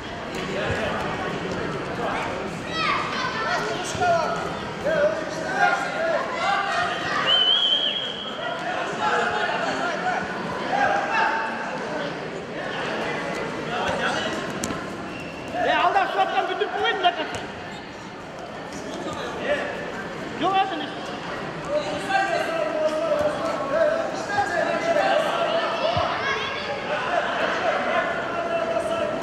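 Bare feet shuffle and thud on a soft mat.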